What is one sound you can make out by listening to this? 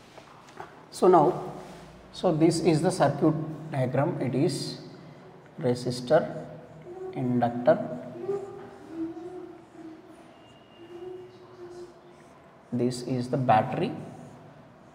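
A man speaks calmly and clearly, as if explaining, close by.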